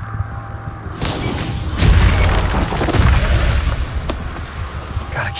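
Magic energy crackles and bursts with a loud blast.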